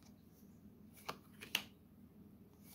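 Playing cards click softly as they are shuffled.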